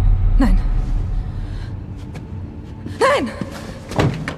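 A young woman shouts loudly in an echoing hall.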